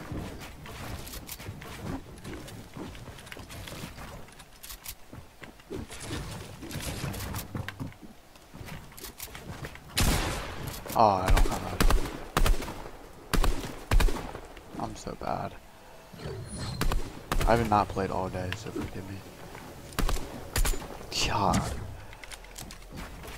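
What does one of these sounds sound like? Wooden and stone panels clatter and thud into place in quick bursts.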